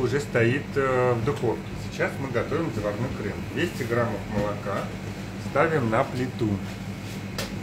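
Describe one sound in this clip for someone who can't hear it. A man talks calmly and close by.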